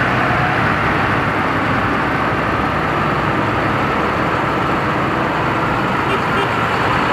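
A tractor engine rumbles loudly as it drives past close by.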